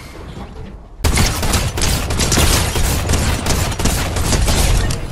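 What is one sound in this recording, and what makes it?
A rifle fires a string of sharp shots.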